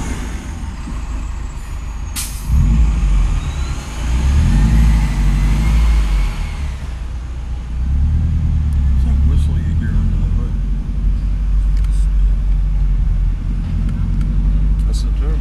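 A car engine hums low from inside the car as it drives along a street.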